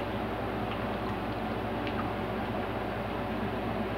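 A young woman gulps water from a bottle.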